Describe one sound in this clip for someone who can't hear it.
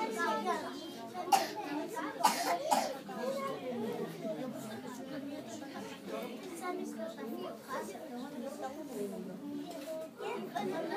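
A woman speaks softly to the children.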